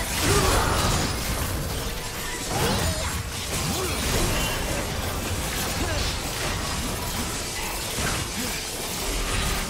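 Spell effects crackle and burst in a fast video game fight.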